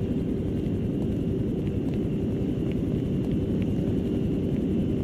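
Footsteps patter quickly on pavement and stairs.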